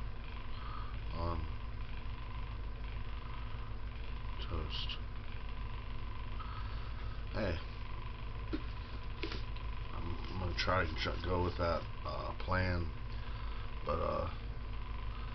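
A man speaks quietly and haltingly close to a microphone.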